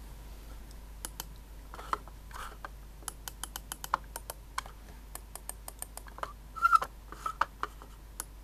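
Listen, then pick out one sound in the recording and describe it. A trackball rolls and clicks under a thumb.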